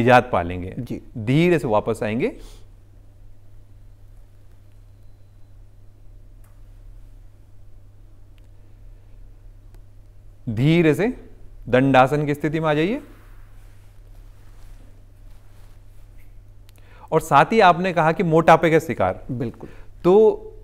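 A man speaks calmly and clearly into a microphone, pausing between phrases.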